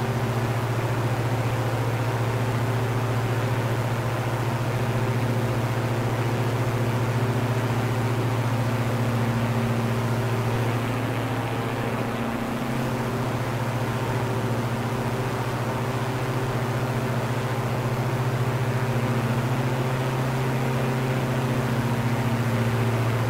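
Twin propeller engines drone steadily, shifting slightly in pitch.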